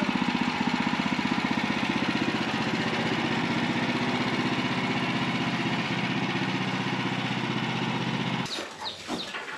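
A sawmill engine runs with a steady hum.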